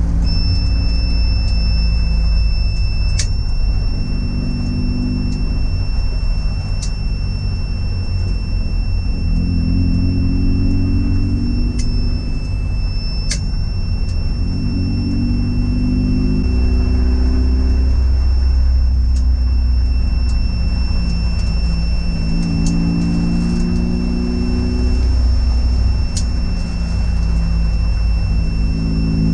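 A car engine roars loudly from inside the car, its pitch rising and falling as it revs and shifts gears.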